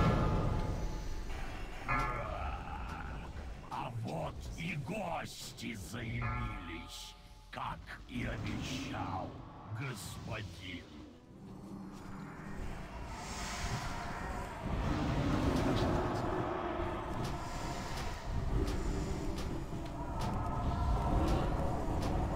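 Magic spells crackle and boom in a busy battle.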